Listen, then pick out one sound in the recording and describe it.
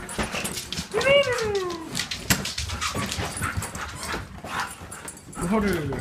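A dog whines in a high, falling voice.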